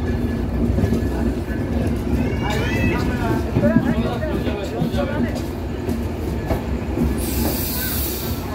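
A train engine rumbles steadily nearby.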